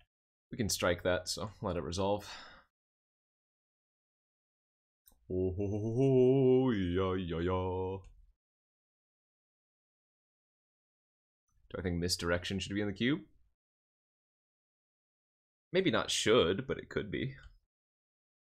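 A man talks into a microphone in short bursts with animation.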